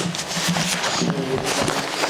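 Footsteps shuffle over a hard floor.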